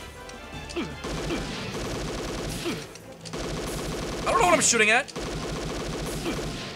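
Electronic gunshots fire several times.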